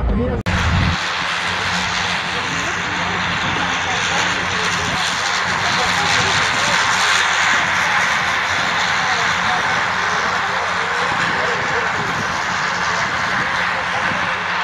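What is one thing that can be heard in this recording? A propeller plane's engine roars steadily nearby.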